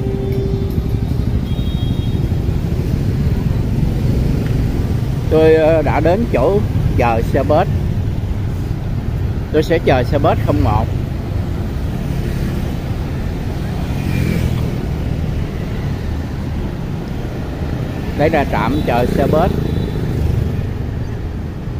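Motorbike engines hum and buzz as traffic passes close by on a street.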